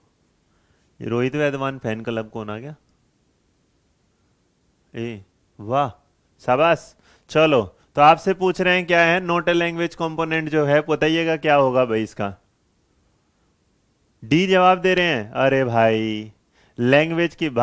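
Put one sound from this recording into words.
A young man speaks into a close microphone in a calm, explaining manner.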